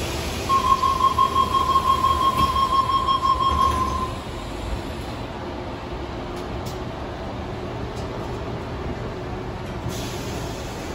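A train hums steadily.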